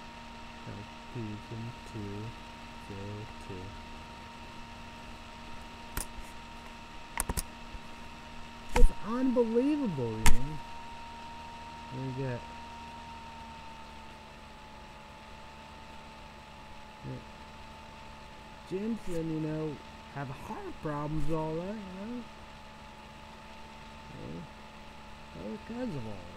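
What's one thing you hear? A young man speaks calmly and close to a microphone, in short bursts with pauses.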